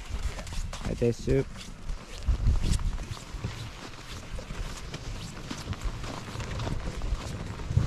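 A plastic sled scrapes over snow.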